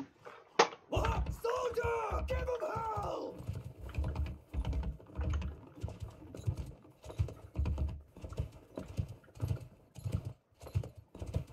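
Horse hooves gallop steadily over the ground.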